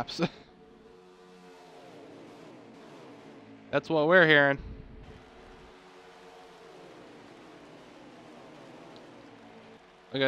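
Several race car engines roar steadily, rising and falling in pitch as the cars pass.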